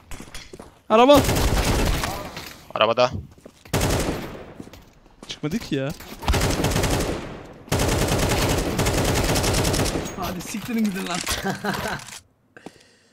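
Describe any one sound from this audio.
Gunshots crack from a rifle in bursts.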